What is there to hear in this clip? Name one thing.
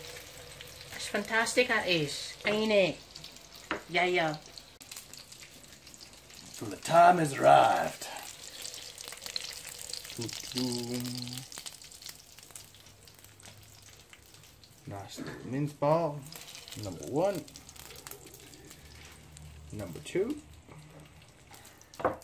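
A spatula scrapes against a pan and plate.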